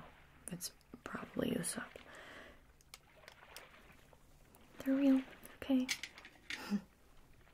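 A young woman whispers and murmurs softly, very close to the microphone.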